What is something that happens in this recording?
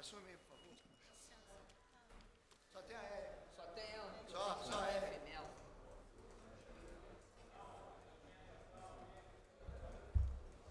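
A man speaks calmly over a microphone in a large echoing hall.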